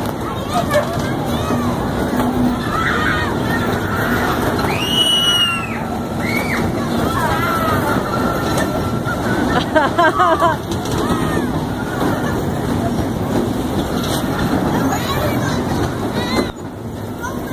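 Children shout and squeal excitedly nearby.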